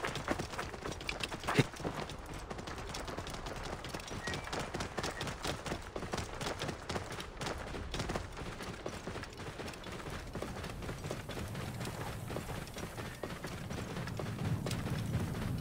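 A camel's hooves thud steadily on sand.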